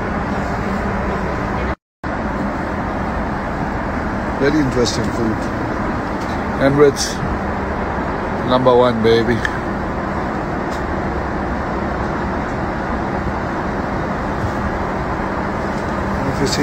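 A steady low drone of jet engines fills an aircraft cabin.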